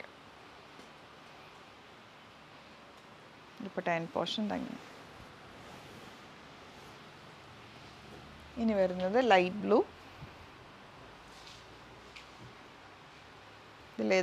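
Fabric rustles as it is unfolded and handled.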